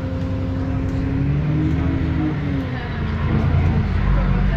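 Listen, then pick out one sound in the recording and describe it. A bus engine whines as it changes pitch, rising and falling.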